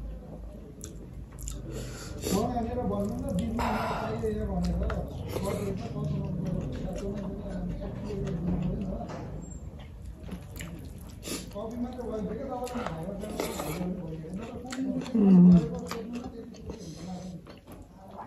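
Fingers squish and mix rice on a plate.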